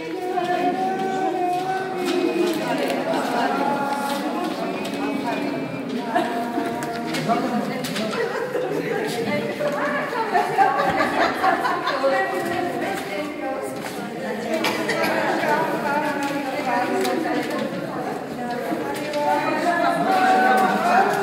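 Several women talk over one another in a room.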